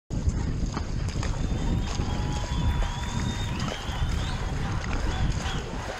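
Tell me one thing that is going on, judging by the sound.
A paddle splashes into the water.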